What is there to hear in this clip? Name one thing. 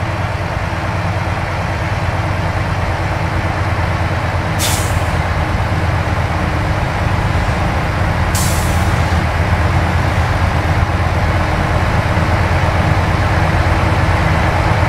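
A truck engine hums low and steady from inside the cab.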